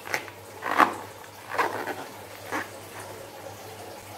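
A rubber balloon squeaks as hands squeeze it.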